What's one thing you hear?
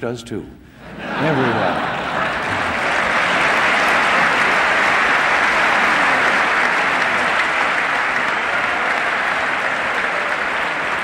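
A large crowd applauds and cheers loudly.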